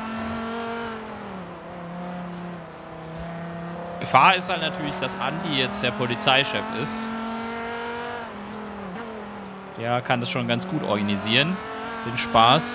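A car engine hums steadily at speed, its pitch shifting slightly as it changes gear.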